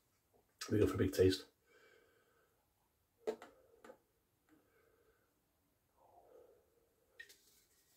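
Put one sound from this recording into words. Beer pours from a can into a glass with a fizzing hiss.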